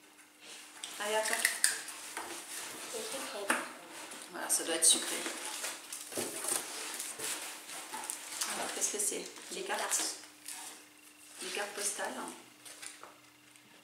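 Paper rustles as a box is unpacked.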